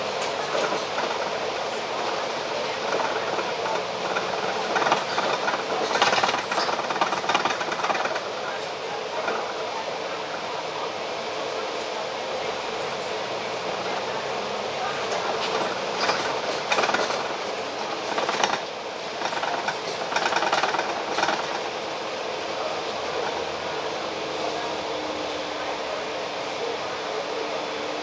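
Busy city traffic hums steadily outdoors.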